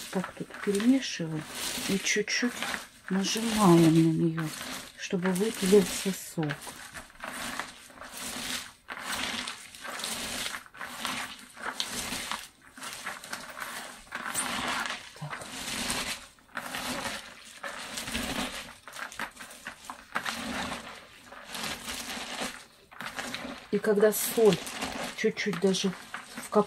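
Hands squeeze and scrunch wet shredded cabbage with soft crunching and squelching.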